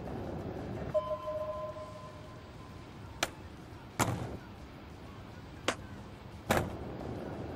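A menu chime sounds.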